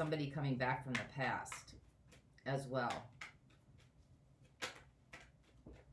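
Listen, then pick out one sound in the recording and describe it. Playing cards shuffle and rustle in a woman's hands.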